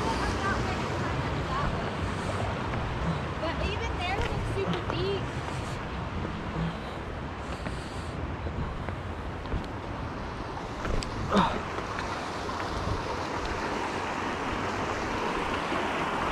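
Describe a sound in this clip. Footsteps crunch and scrape on loose stones.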